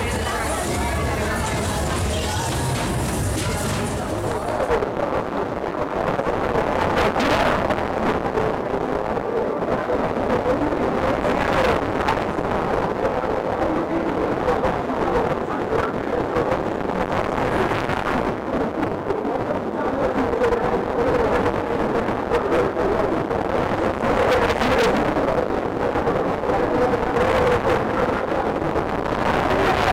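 Loud fairground music plays through loudspeakers.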